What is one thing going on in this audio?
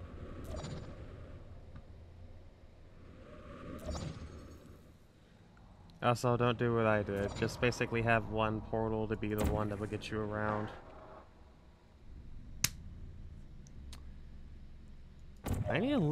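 A energy gun fires with a sharp zap several times.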